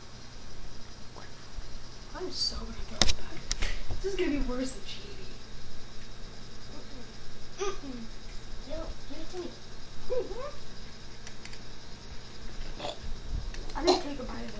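A boy talks and laughs close to the microphone.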